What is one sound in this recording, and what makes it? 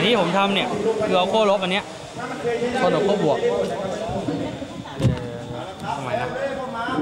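A young man speaks calmly up close.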